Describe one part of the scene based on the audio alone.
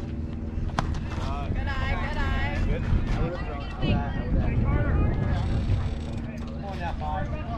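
Young players and spectators shout and cheer outdoors.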